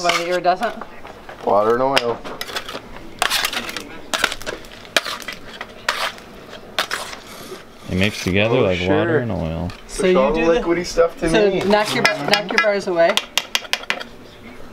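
A metal scraper scrapes and taps on a stone slab.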